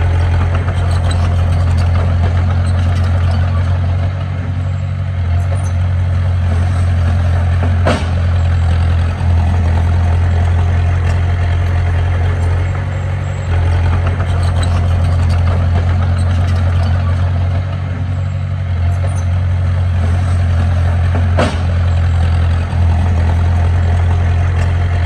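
A bulldozer's blade scrapes and pushes soil.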